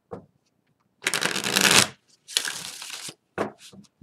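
A deck of cards is riffled and shuffled.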